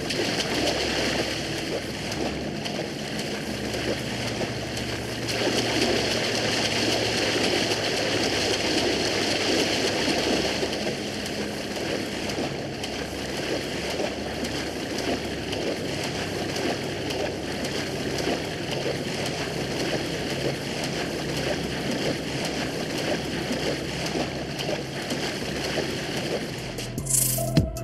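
Water splashes steadily as a swimmer strokes through the sea.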